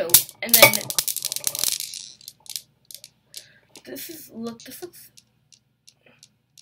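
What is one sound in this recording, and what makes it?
Steel balls clack against each other in quick, fading clicks.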